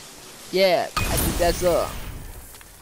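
A burst of magic crackles and roars.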